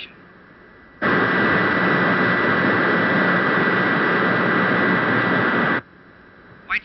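A rocket engine roars steadily, then cuts off abruptly.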